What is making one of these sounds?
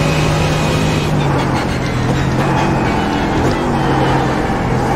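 A racing car engine drops in pitch as the car brakes and shifts down.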